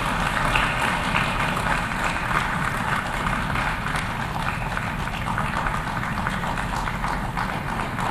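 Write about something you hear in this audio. A man speaks steadily through a microphone in a large, echoing hall.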